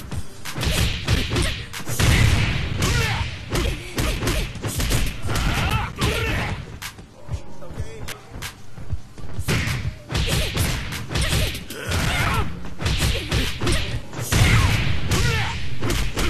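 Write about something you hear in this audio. Punches and kicks land with heavy, rapid thuds.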